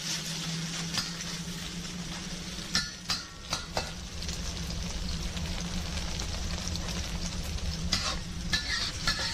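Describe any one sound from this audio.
A spatula scrapes and clinks against a metal pan.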